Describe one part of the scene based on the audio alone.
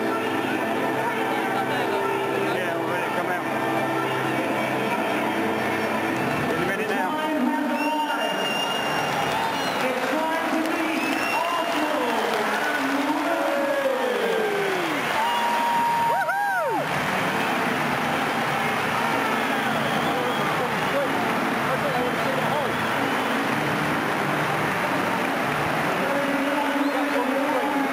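A large stadium crowd roars and chatters all around.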